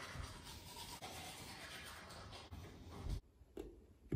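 A toothbrush scrubs against teeth.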